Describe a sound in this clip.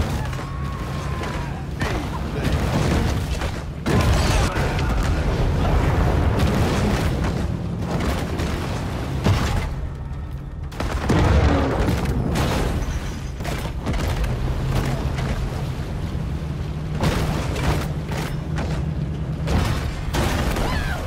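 Water splashes and churns as a large creature thrashes through waves.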